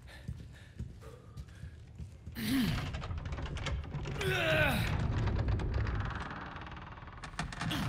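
A heavy wooden cabinet scrapes and creaks as it is pushed over a floor.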